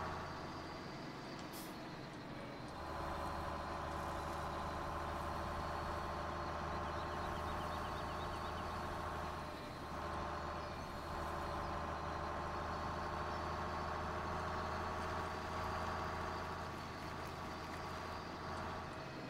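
A truck engine hums steadily as a truck drives along.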